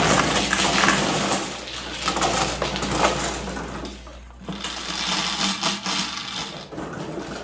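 A table machine whirs as tiles drop into it.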